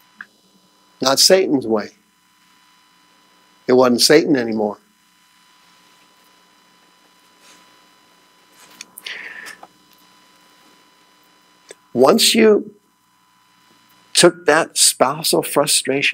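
A man speaks with animation in bursts with long pauses, heard through a microphone.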